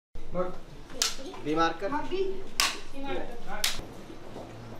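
A clapperboard snaps shut.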